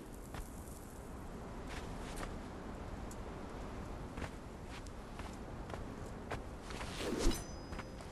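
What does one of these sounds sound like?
Footsteps tread softly on sand.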